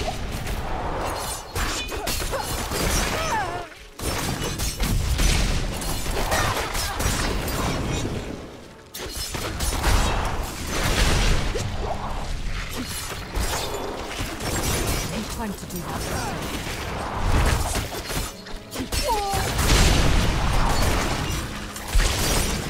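Blades and spells clash and crack in rapid bursts of fighting.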